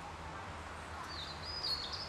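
A man's footsteps crunch softly on leaves.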